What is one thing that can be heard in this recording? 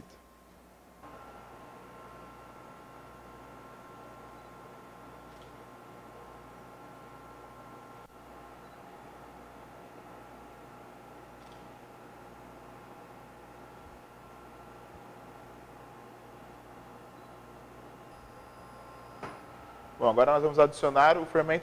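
A mixer motor hums steadily.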